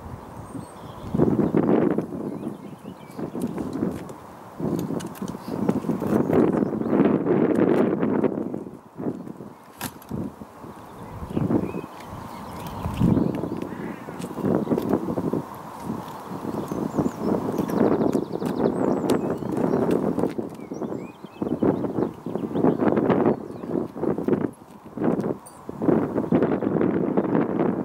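Wind buffets loudly outdoors in gusts.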